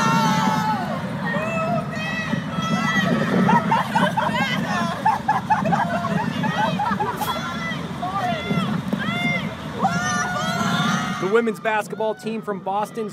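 A crowd of young women shouts and cheers together outdoors.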